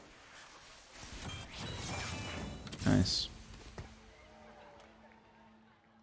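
Battle sound effects clash and whoosh in a video game.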